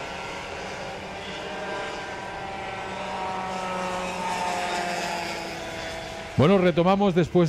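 Kart engines whine steadily as karts race past.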